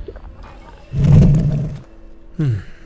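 A magic blast bursts with a loud whoosh.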